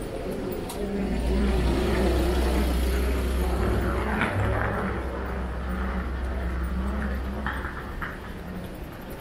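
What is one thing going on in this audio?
A van drives slowly past nearby with a low engine rumble.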